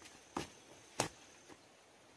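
A hoe strikes the soil.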